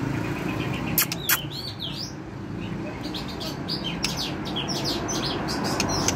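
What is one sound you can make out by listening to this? A white-rumped shama sings in rich whistled phrases.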